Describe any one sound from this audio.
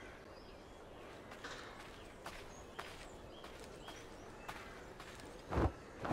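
Footsteps fall on dirt.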